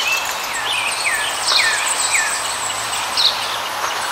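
A shallow river rushes over stones.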